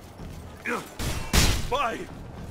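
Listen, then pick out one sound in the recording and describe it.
A sword strikes with a sharp metallic clash.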